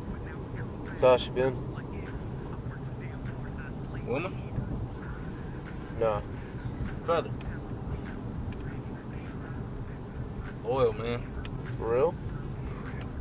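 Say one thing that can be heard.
A man speaks in short, calm bursts close by.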